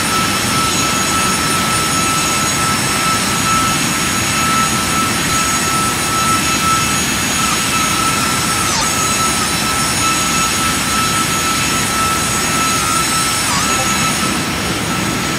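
A high engine whine hums steadily.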